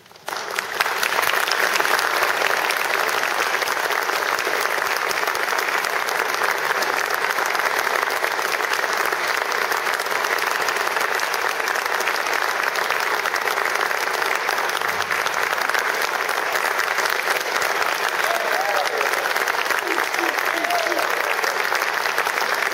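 An audience claps loudly and steadily in a hall.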